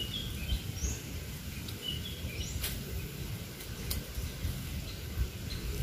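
A fishing reel clicks as it winds in line.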